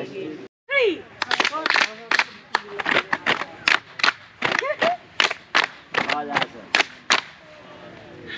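A group of young people shout counts in unison.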